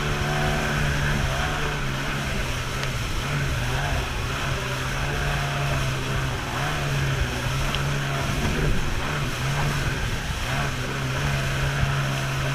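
Wind buffets loudly.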